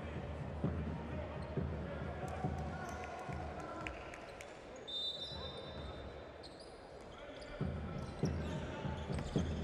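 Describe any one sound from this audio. A basketball bounces on a hard court with thudding beats.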